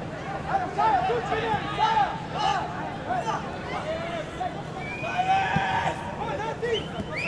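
Men shout to each other across an open outdoor pitch.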